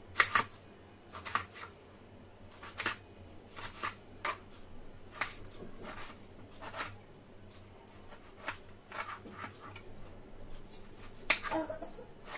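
A knife taps and thuds against a cutting board as vegetables are chopped.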